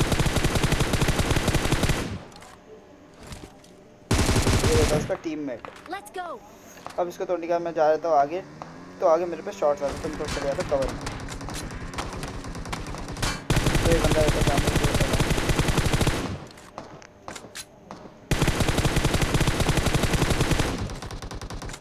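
Rapid gunfire bursts out in long, loud volleys.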